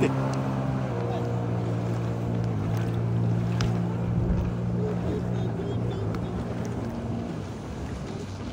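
A jet ski engine drones steadily across the water.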